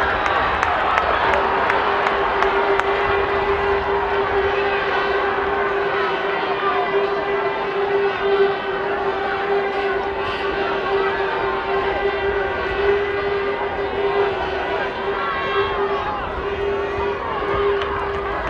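A large crowd in an outdoor stadium shouts and cheers.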